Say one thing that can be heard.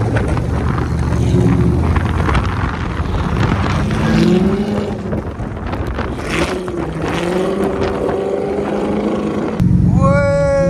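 Other car engines roar nearby.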